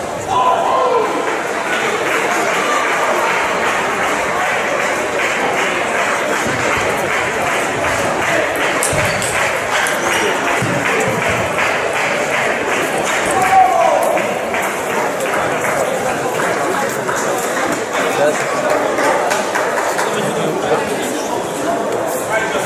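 Table tennis balls click against paddles and tables in quick rallies.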